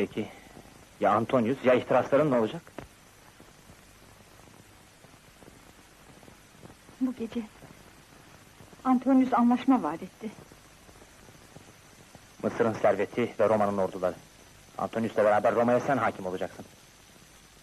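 A man speaks softly and intimately, close by.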